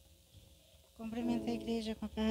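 A woman speaks into a microphone over a loudspeaker.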